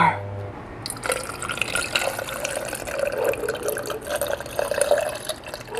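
Water pours from a plastic bottle into a metal tumbler.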